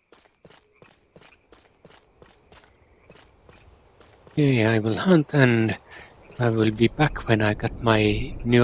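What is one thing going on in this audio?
Footsteps crunch at a steady walking pace on hard ground.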